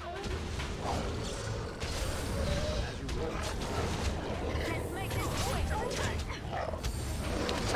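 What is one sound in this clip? Swords clash and thud in a busy fight.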